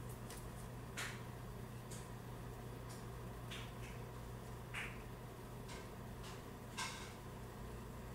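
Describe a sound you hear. Small clicks and taps come from a makeup brush being handled close by.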